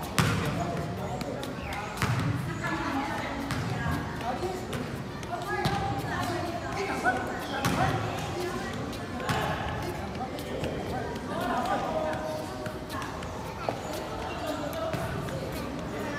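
Children chatter in the background.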